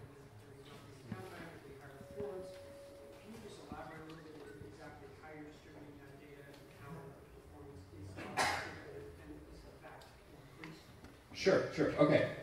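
A man speaks to an audience.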